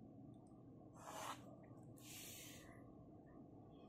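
A plastic ruler slides over paper.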